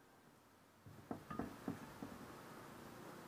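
A metal wheel knocks and clanks against a wooden bench.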